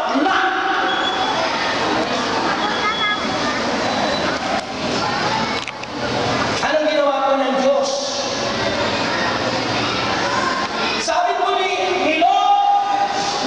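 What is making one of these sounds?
A man speaks with animation through a microphone and loudspeakers in a large echoing hall.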